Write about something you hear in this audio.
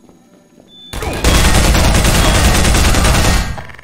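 A rapid burst of gunfire rattles loudly.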